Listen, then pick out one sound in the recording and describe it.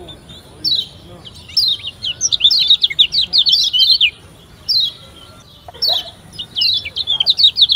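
A small bird sings in quick, high twittering bursts.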